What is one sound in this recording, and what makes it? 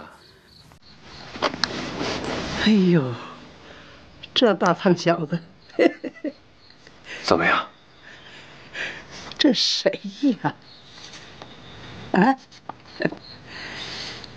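An elderly man speaks and laughs warmly.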